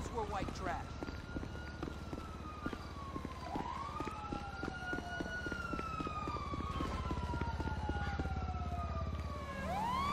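Running footsteps slap on pavement.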